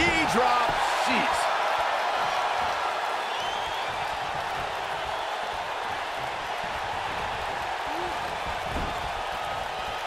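A crowd cheers and roars steadily in a large arena.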